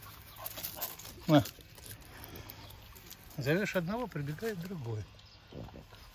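A dog sniffs at the grass close by.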